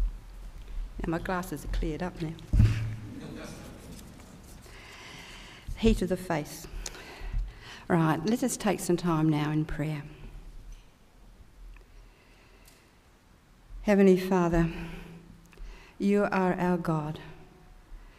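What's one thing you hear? A woman speaks calmly into a microphone, heard through loudspeakers in a large room.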